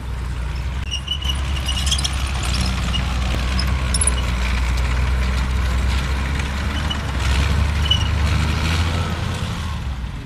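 A heavy truck engine rumbles and roars outdoors.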